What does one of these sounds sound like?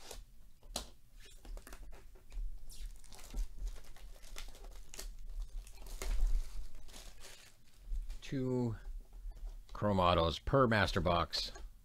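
Hands handle a cardboard box, tapping and rustling it.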